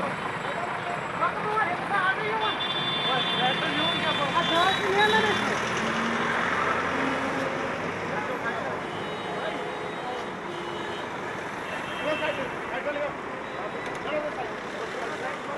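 Men talk loudly nearby.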